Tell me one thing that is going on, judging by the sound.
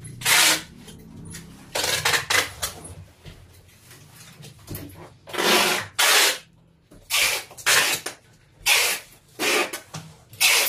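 Cardboard boxes scrape and rustle as they are shifted about.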